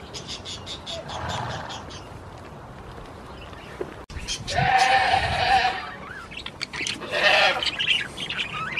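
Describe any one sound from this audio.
A goat bleats loudly close by.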